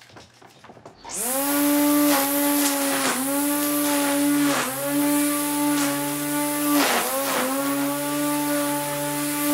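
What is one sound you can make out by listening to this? A string trimmer's motor whirs loudly and steadily, dipping in pitch now and then as it cuts grass.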